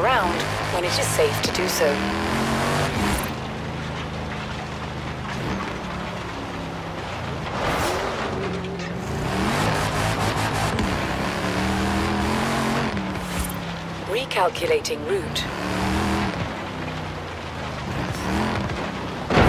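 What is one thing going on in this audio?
Tyres skid and crunch over loose dirt.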